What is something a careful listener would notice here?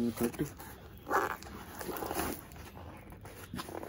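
A cardboard box scrapes and rustles against fabric.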